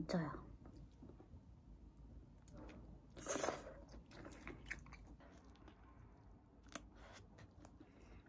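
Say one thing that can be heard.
A young woman chews and slurps food.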